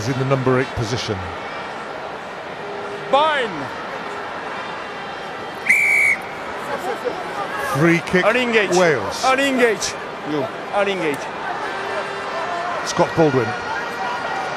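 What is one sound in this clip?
A large crowd roars steadily in a big stadium.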